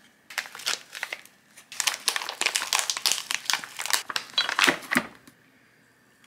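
A plastic pouch rustles as it is squeezed out.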